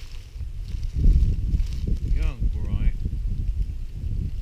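Dry leaves rustle and crunch.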